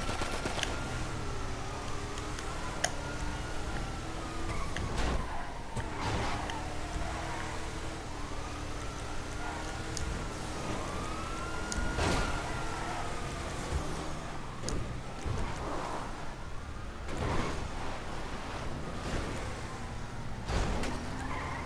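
Sirens wail up and down.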